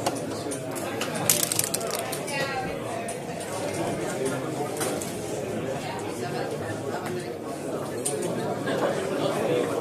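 Plastic game pieces click as they are slid and set down on a board.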